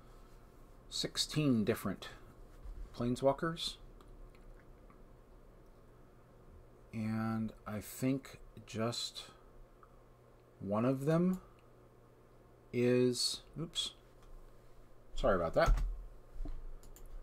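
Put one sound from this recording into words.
A middle-aged man talks calmly into a close microphone, in short bursts.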